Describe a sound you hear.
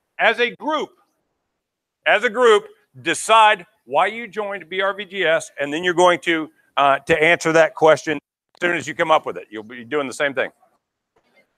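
A man speaks with animation in a large room, heard through a microphone.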